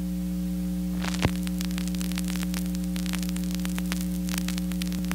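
A vinyl record crackles and pops as it spins under the needle.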